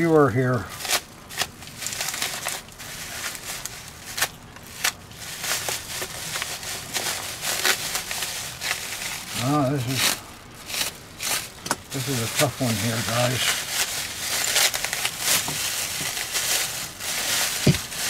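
Paper crinkles and rustles as it is crumpled and wrapped by hand.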